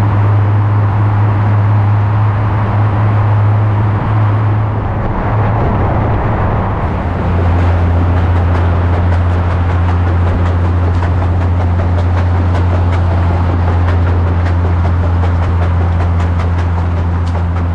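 A car engine hums steadily and loudly.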